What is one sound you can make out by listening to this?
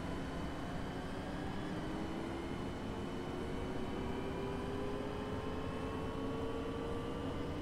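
A bus engine revs higher as the bus picks up speed.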